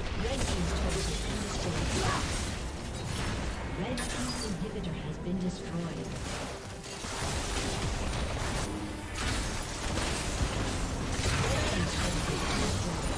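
Fantasy battle sound effects clash and blast in quick bursts.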